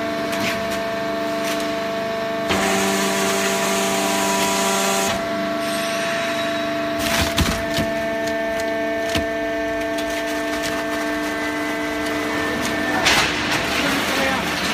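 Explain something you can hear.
A hydraulic baling press hums as it runs.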